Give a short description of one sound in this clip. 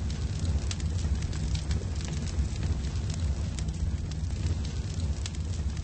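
A storm wind roars steadily outside, with a deep rumble.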